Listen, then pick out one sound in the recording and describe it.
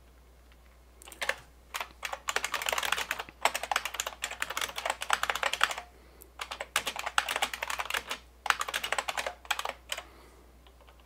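Keys clatter rapidly on a computer keyboard in bursts.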